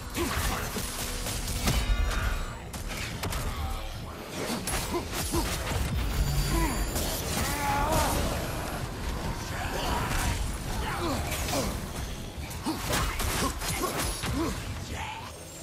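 Metal weapons clash and strike in rapid blows.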